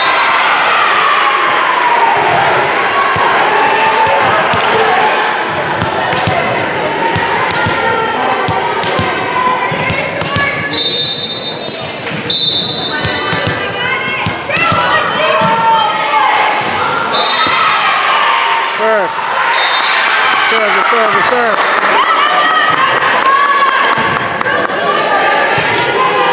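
A crowd of spectators cheers and chatters in a large echoing gym.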